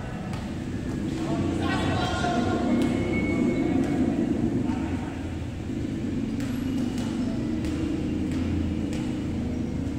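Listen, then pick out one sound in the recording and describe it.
A volleyball is struck by hand with sharp slaps that echo around an indoor court.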